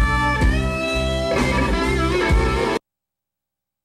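An electric guitar plays rock music with a band.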